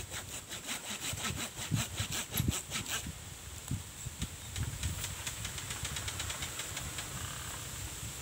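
Dry leaves crackle and rustle as a man shifts his weight on the ground.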